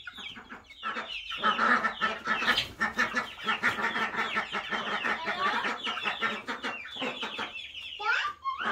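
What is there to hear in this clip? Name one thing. Hens cluck softly.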